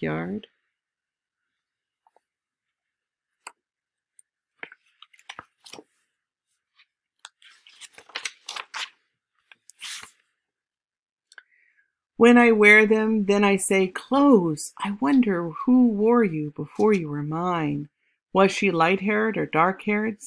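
A woman reads aloud expressively, close to a microphone.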